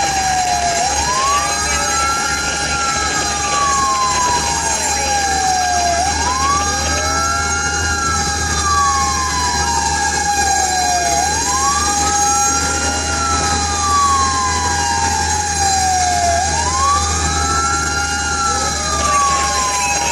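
A siren wails loudly nearby, rising and falling over and over.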